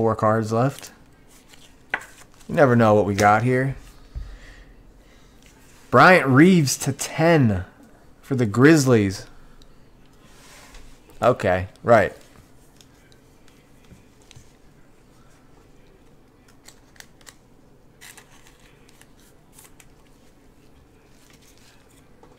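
Plastic crinkles and rustles as cards are handled.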